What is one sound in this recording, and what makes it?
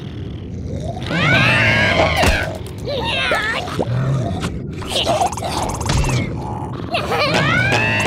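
A cartoon creature yells in a gruff, angry voice.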